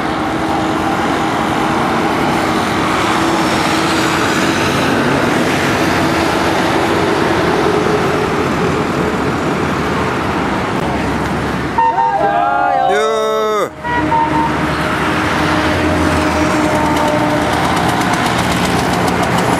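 Traffic rumbles steadily along a busy road outdoors.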